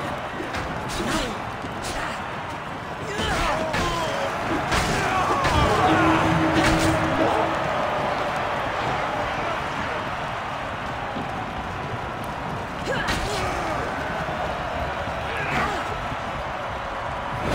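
Weapons clash and strike in a close fight.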